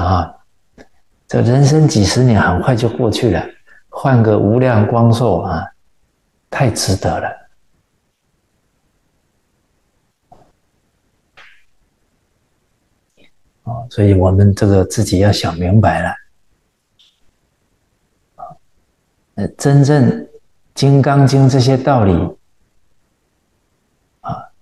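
An elderly man speaks calmly into a close microphone, in phrases with long pauses.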